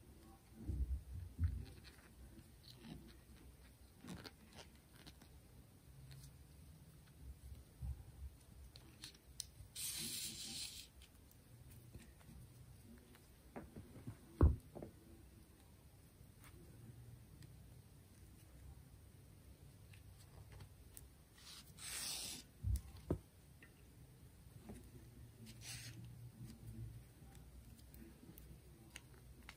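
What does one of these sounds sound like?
Yarn and thread rustle softly as hands handle a small knitted toy.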